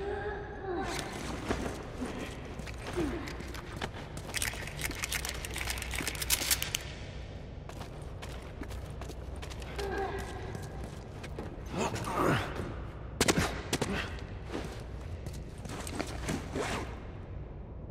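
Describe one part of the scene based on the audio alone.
Footsteps crunch over debris and broken glass.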